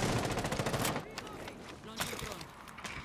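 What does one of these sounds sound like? A rifle is reloaded with sharp metallic clicks.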